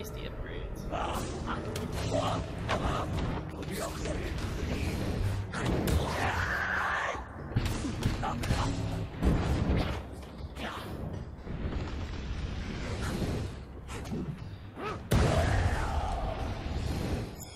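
Magic blasts crackle and boom in a fight.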